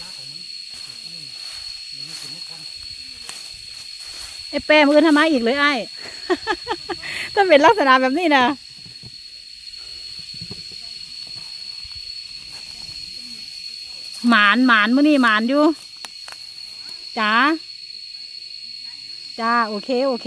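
Footsteps crunch on dry pine needles and leaves.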